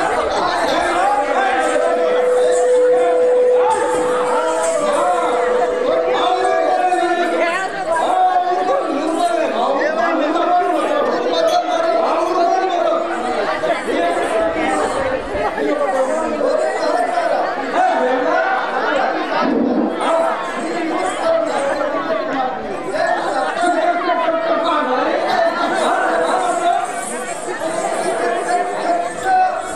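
A man speaks with animation through a loudspeaker.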